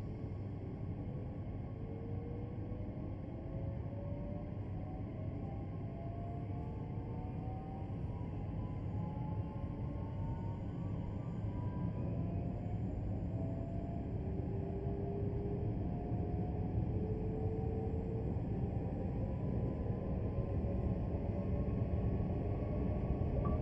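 An electric train motor whines, rising in pitch as the train speeds up.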